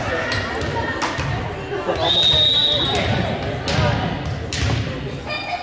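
A volleyball is struck with sharp smacks.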